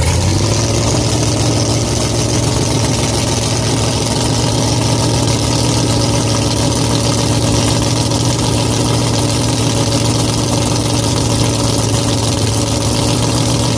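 A race car engine rumbles loudly and steadily up close.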